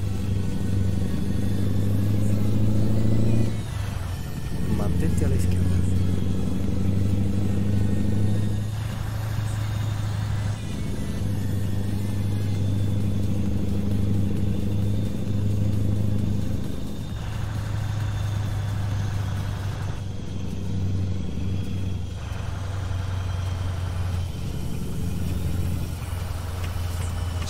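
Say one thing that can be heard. A truck engine drones steadily.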